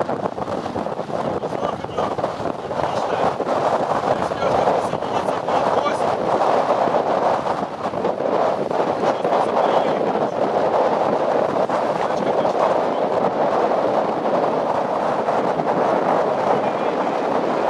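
Strong wind roars past outdoors.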